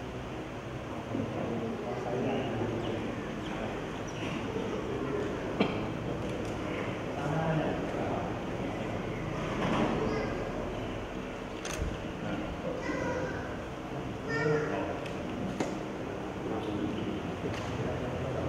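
Elderly men talk quietly nearby.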